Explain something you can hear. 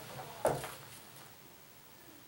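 Paper rustles as a sheet of music is handled.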